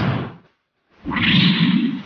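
A man roars with rage.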